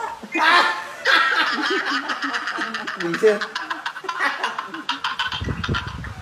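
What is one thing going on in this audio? A man laughs loudly and heartily through a phone's video call.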